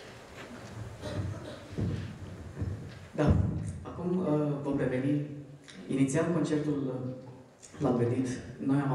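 A man speaks calmly into a microphone, heard through loudspeakers in a large echoing hall.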